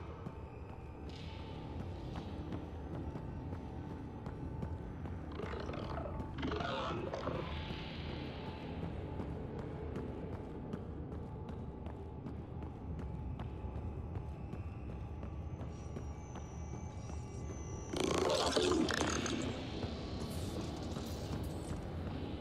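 Heavy footsteps clank quickly on a metal floor.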